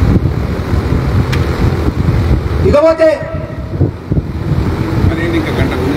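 A man speaks forcefully into a microphone through loudspeakers, outdoors.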